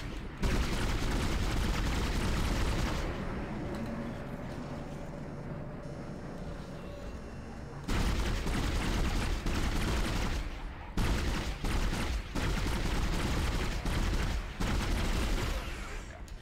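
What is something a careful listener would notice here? A weapon fires in rapid bursts with loud crackling blasts.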